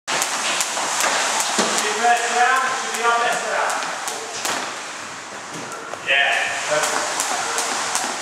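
A jump rope slaps the floor in a quick, steady rhythm.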